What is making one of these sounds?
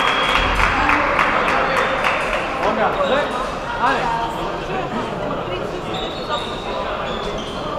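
Voices murmur and echo through a large hall.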